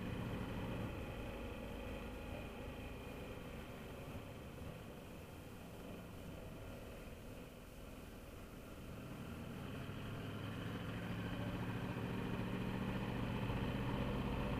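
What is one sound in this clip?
A motorcycle engine hums steadily, easing off through a turn and then revving up as it speeds up.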